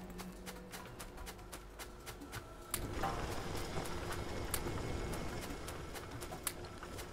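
Machines clatter and whir steadily.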